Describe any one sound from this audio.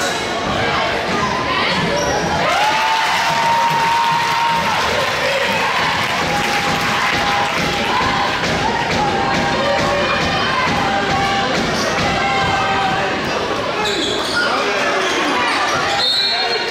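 A group of young women chant cheers loudly in an echoing gym.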